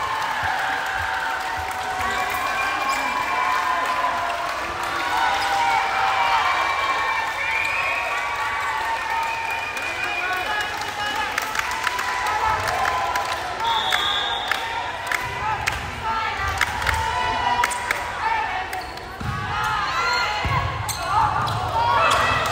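A crowd of spectators chatters and cheers loudly in a large echoing gym.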